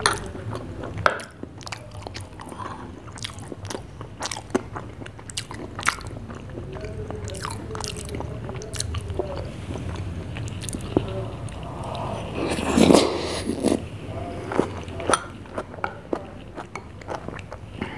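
A spoon clinks against a glass.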